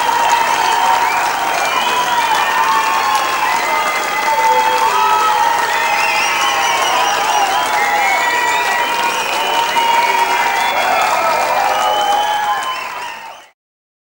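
A large crowd of men and women chatters and calls out loudly in a big echoing hall.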